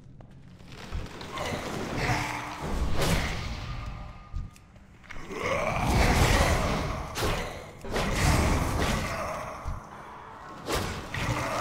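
Magic spells crackle and boom in a fight.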